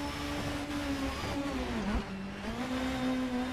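A racing car engine drops in pitch as the driver downshifts under braking.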